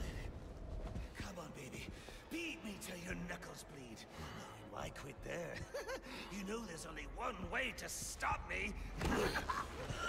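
A man taunts with a raspy, gleeful voice.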